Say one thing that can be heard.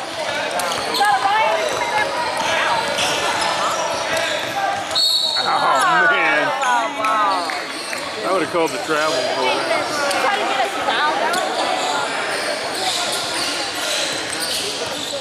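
A crowd of spectators talks and cheers nearby in an echoing hall.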